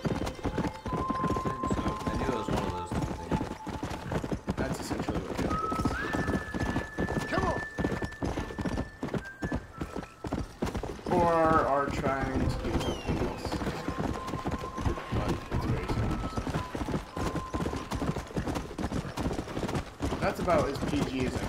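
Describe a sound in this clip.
Horse hooves pound steadily at a fast gallop on a dirt path.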